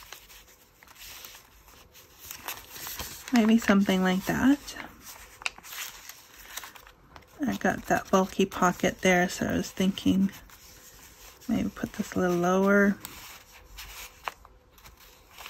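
Paper rustles and crinkles softly as hands handle it.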